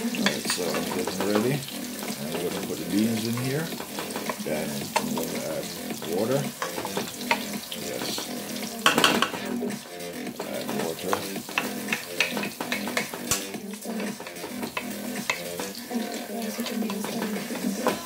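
A wooden spoon scrapes and taps against a pan.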